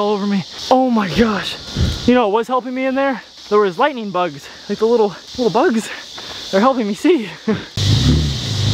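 A young man talks with excitement, close by.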